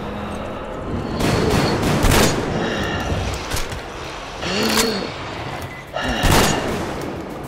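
Gunfire rattles in short, loud bursts.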